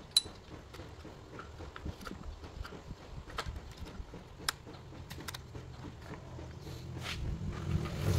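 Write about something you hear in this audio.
Small plastic parts click and tap on a chainsaw.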